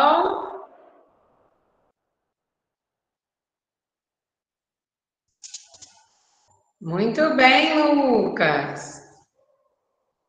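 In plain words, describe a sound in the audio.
A young woman speaks calmly into a microphone in short phrases, heard as if over an online call.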